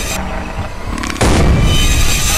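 A grenade launcher fires with a loud boom.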